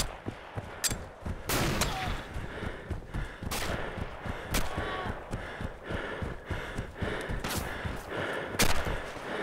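Footsteps run through grass.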